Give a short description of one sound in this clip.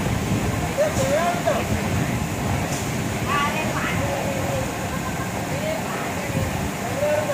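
Men call out to each other nearby.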